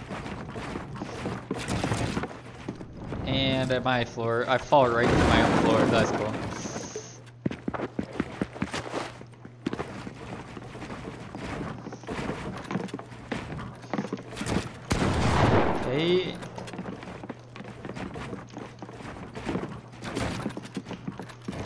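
Rapid clicks and thuds of building come from a video game.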